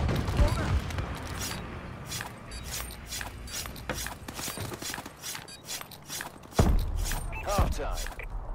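Footsteps thud in a quick running rhythm.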